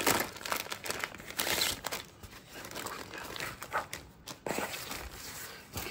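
Sheets of paper rustle and slide.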